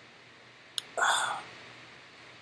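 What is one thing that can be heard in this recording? A man exhales with a loud breath after drinking.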